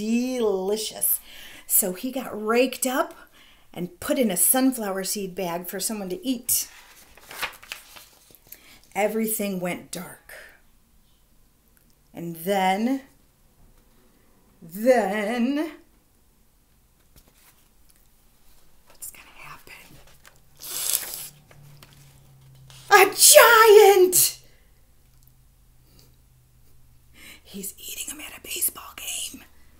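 A woman reads aloud expressively, close to the microphone.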